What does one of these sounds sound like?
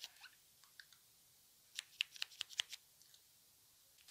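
A lip gloss wand clicks and smacks wetly against lips.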